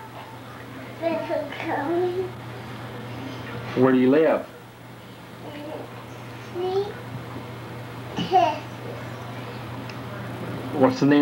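A young child speaks and babbles close by.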